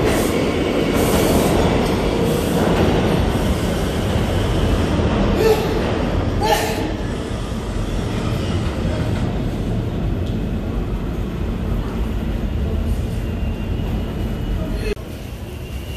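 A departing train rumbles away into a tunnel and slowly fades.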